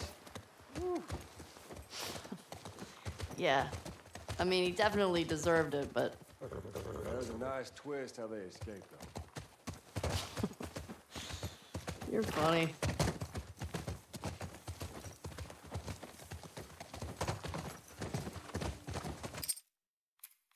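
Horse hooves clop on a dirt trail.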